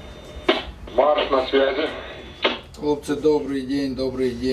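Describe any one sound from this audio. A man speaks into a handheld radio.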